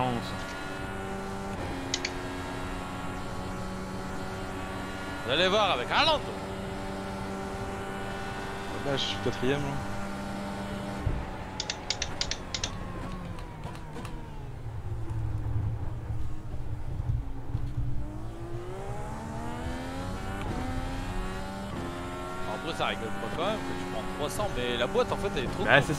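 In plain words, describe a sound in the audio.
A racing car engine whines loudly, dropping in pitch as it brakes and rising again as it speeds up.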